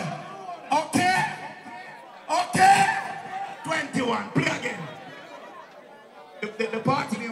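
A man shouts with excitement near the microphone.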